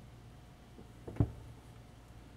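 A wooden slice knocks softly as hands shift it.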